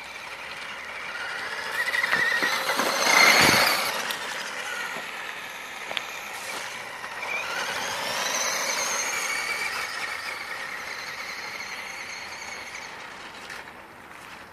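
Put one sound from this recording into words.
Small tyres rasp over rough pavement.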